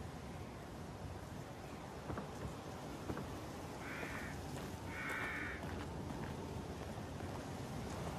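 Footsteps crunch over dirt and dry grass.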